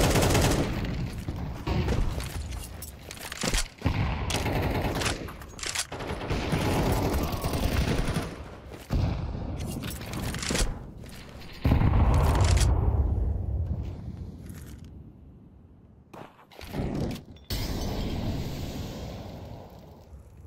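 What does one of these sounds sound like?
A smoke grenade hisses as it bursts open.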